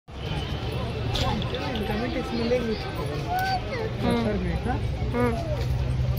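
A busy street crowd chatters outdoors.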